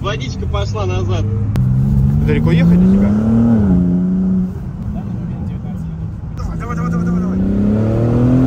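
A car engine hums and revs.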